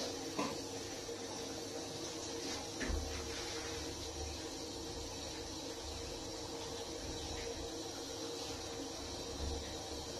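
A woman wipes a glass panel with a squeaking cloth.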